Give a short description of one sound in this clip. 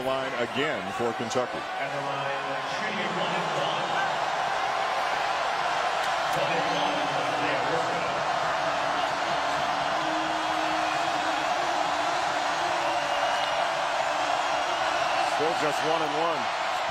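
A large crowd roars loudly in an echoing arena.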